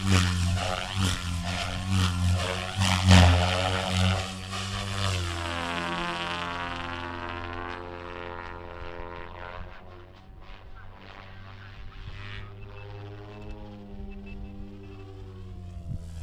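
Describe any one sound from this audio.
A model helicopter's rotor and motor whine loudly, then fade as it climbs away into the distance.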